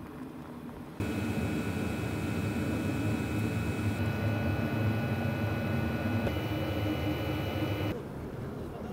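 An engine hums steadily inside a vehicle.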